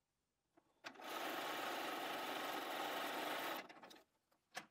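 A sewing machine runs steadily, stitching fabric.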